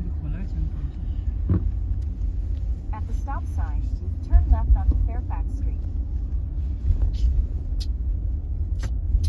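A car engine hums with a steady low rumble of tyres on the road.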